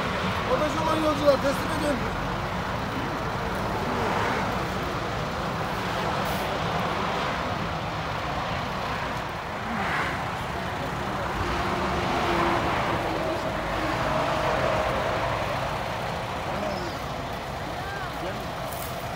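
Several men talk at once nearby.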